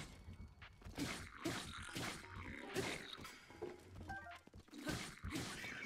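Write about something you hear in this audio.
Sharp impact cracks ring out as a weapon strikes a creature.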